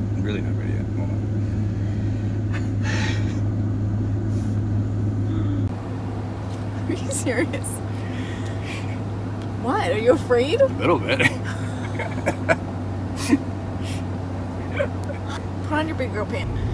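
A man talks close by in a car.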